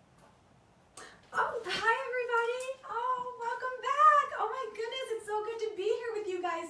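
A young woman speaks brightly and with animation, close by.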